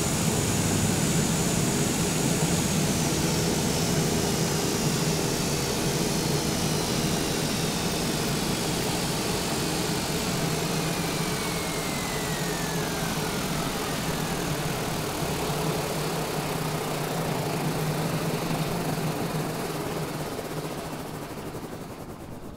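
A turboprop engine winds down with a falling whine.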